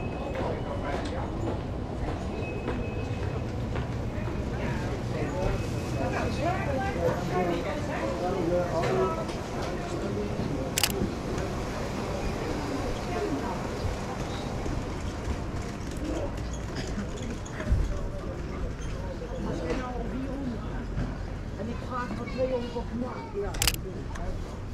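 A crowd of people chatters in a busy outdoor street.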